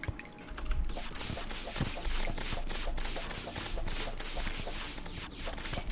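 Quick clicks and crackles of a fight rattle on rapidly.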